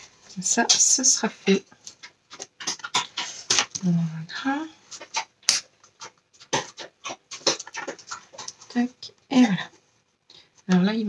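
Stiff cardboard rustles and taps.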